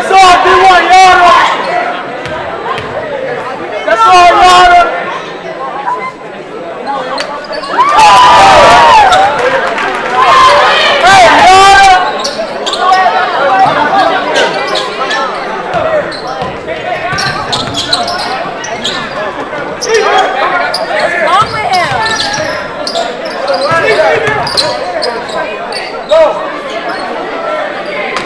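A crowd in a large echoing gym cheers and shouts.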